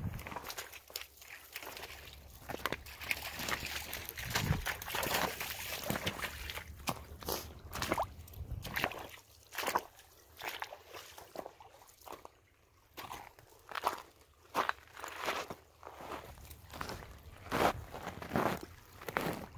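A stream trickles over stones.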